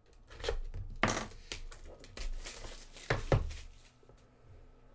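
A cardboard box lid scrapes and rustles as it is pulled off.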